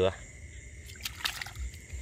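Water splashes briefly.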